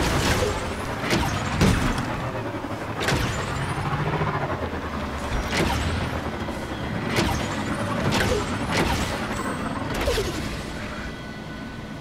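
A motorbike engine rumbles and revs over rough ground.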